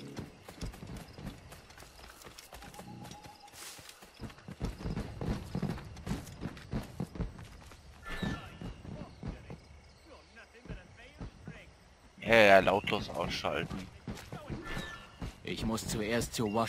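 Footsteps crunch through grass and then tap on a stone path.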